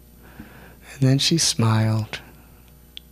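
An elderly man laughs softly.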